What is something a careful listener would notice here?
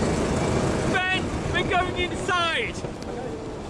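A man speaks close by.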